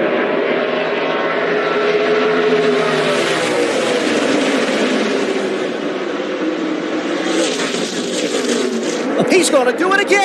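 Race car engines roar at high speed, rising and falling in pitch as they pass.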